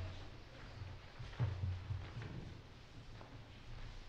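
Footsteps walk softly away.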